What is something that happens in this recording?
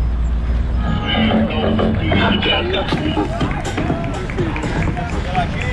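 People cheer and call out nearby.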